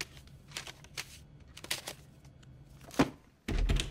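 Paper rustles as a hand rummages through a book.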